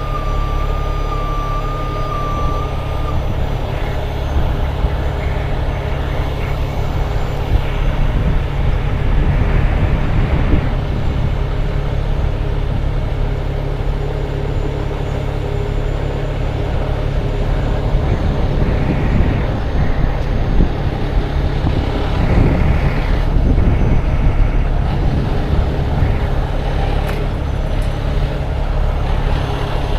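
Tyres crunch slowly over a dirt road.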